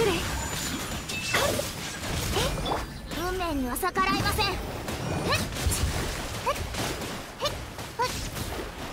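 Magical energy blasts crackle and burst repeatedly.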